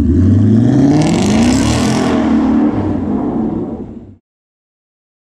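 A car drives away with a rising engine roar.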